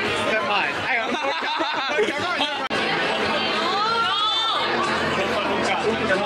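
Several young people chatter and laugh in a noisy crowded room.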